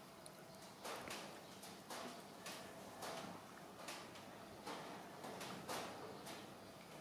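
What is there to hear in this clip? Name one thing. A baby monkey smacks its lips while chewing.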